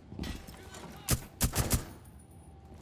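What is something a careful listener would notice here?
A rifle fires a quick burst of sharp shots.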